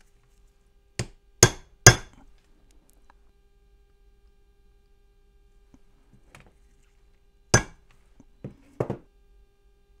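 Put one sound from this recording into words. A hammer strikes a metal punch against a small metal bar in sharp ringing taps.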